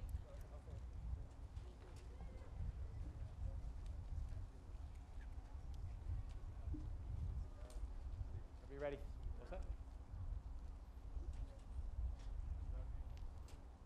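Wind rumbles across an open outdoor space.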